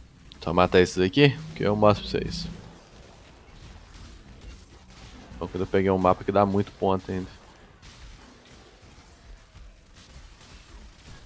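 Magic spells crackle and burst with sharp zaps.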